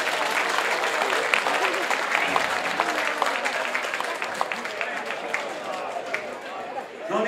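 People clap their hands sharply.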